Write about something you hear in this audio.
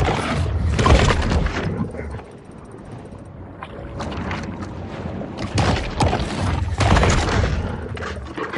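Heavy crunching bites burst out in quick succession.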